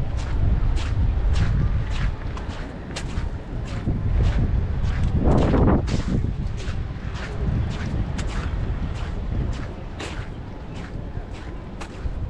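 Footsteps crunch steadily on gravel.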